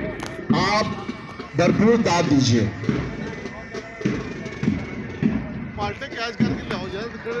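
A man speaks loudly through a loudspeaker outdoors.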